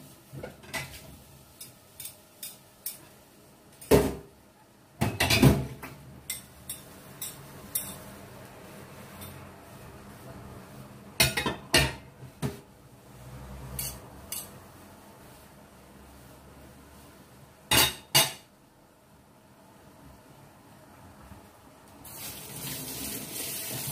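Food sizzles and pops in a covered pan.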